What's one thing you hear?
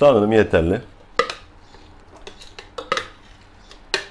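Chopped food slides from a bowl into a blender jug.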